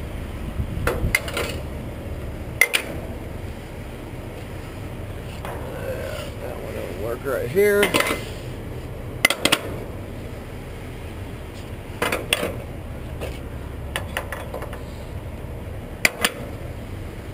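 A cargo strap knocks and rattles against a metal trailer.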